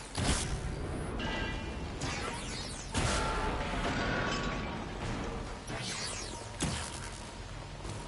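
Crackling energy blasts burst and explode with a loud roar.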